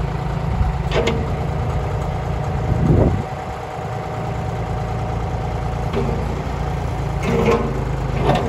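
Metal clanks as a digger bucket shifts.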